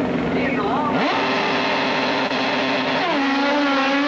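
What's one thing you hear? A motorcycle engine revs up sharply.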